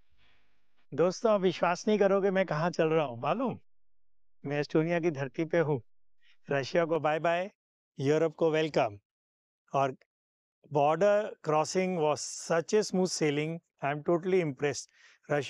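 A man speaks with animation close to a microphone, outdoors.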